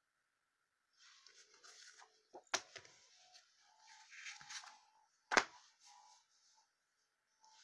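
Paper comics rustle and slide as they are swapped by hand.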